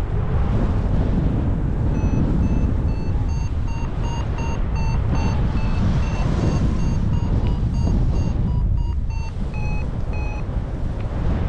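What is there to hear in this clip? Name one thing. Wind rushes loudly and steadily past, high in the open air.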